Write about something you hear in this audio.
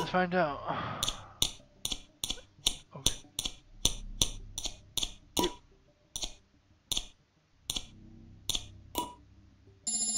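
Short electronic blips sound in quick succession as a game interface cycles through choices.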